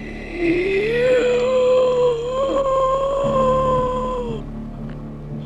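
A man lets out a long, wavering wail.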